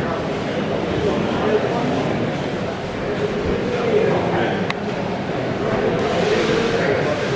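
A crowd of men and women murmurs and chatters in an echoing hall.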